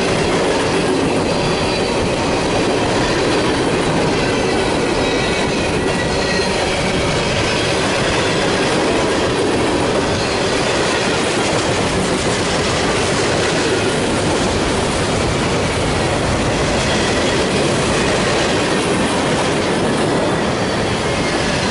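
Metal squeals faintly from a passing train's wheels.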